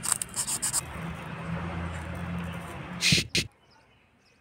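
A knife slices a coconut piece.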